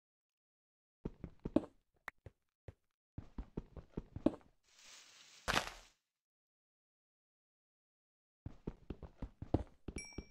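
A pickaxe chips at stone in quick, repeated taps.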